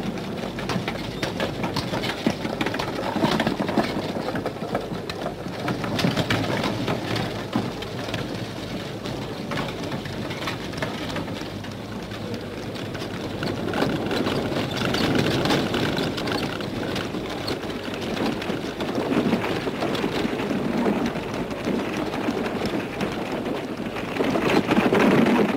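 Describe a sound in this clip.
Wagon wheels rattle and creak over the ground.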